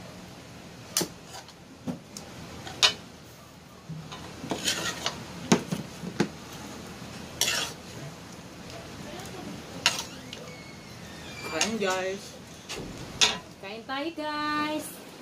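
Serving spoons clink and scrape against a metal wok and plates.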